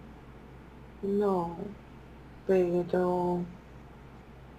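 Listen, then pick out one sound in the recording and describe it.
A woman speaks over an online call.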